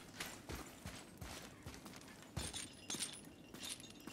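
A metal chain clinks and rattles as it is climbed.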